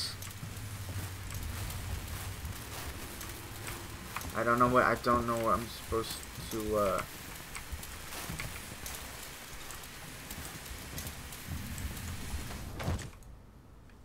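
A flare burns with a steady fizzing hiss.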